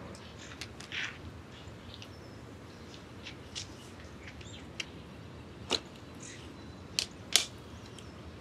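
Plastic lids click and snap open.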